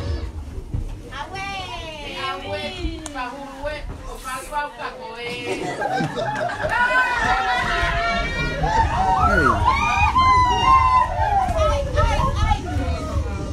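A woman calls out loudly and with animation nearby.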